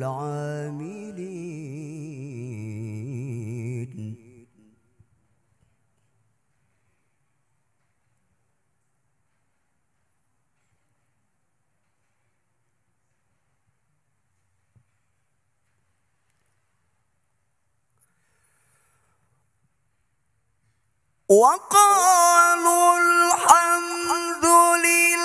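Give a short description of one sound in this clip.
A man chants in a long, wavering melody through a microphone, with a hall's echo.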